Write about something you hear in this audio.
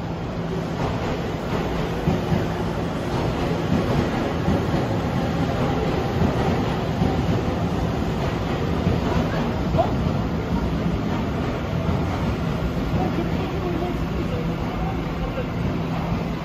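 A stopped train hums steadily.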